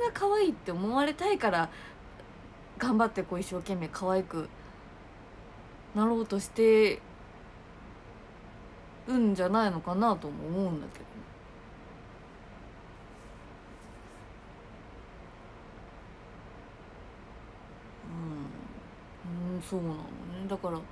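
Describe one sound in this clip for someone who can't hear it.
A young woman talks softly and expressively close to a microphone, with pauses.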